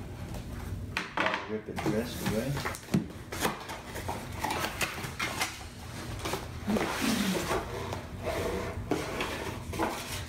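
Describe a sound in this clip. A cardboard box scrapes and thumps on a table.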